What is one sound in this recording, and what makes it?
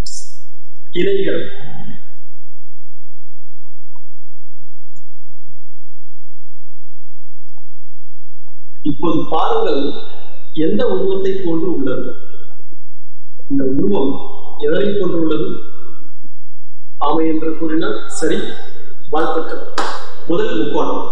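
A man speaks calmly and clearly, close to a microphone.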